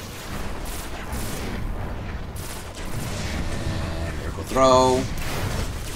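Explosions boom and roar nearby.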